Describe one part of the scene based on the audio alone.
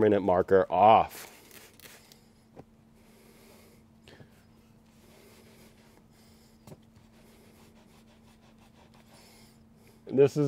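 A cloth rubs softly over a leather seat.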